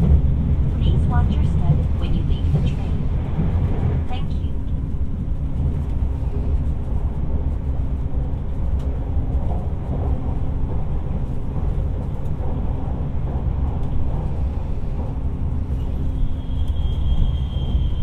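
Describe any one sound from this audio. A train rumbles steadily along the track, heard from inside a carriage.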